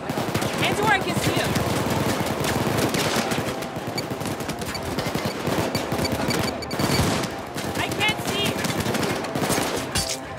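Rapid gunfire rattles and echoes.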